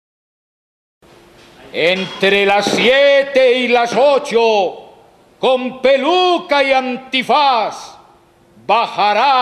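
A man talks with animation over a loudspeaker.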